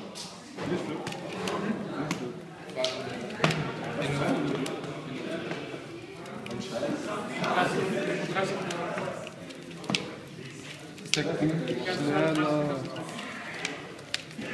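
Trading cards are slid and placed on a cloth playmat.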